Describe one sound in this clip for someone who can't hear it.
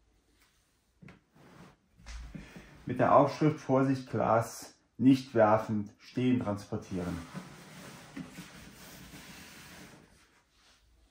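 A cardboard box scrapes and slides across a table.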